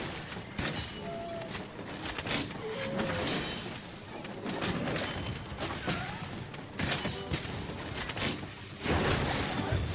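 A sword slashes and clangs against a large beast in quick, repeated hits.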